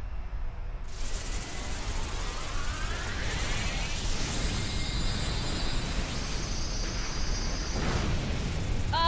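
An energy beam blasts with a rushing, crackling whoosh.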